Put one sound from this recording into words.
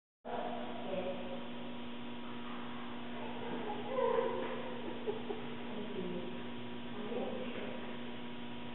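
A young woman gives a dog commands in a calm voice, close by.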